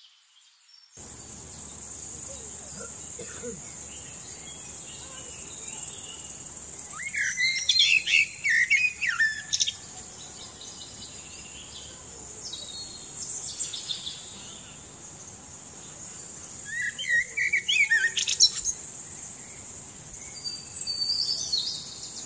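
A bird sings nearby in bursts of whistles, chirps and clicks.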